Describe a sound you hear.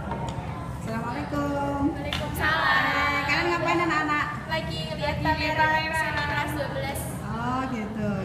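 Two young women talk with animation close by.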